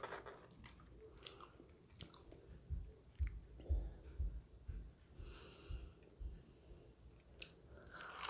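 Crisp toasted bread crackles as it is torn apart close up.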